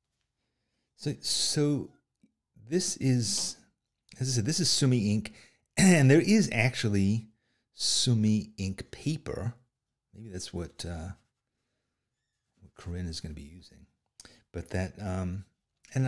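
A middle-aged man talks calmly and closely into a microphone.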